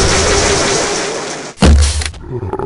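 A creature screeches close by.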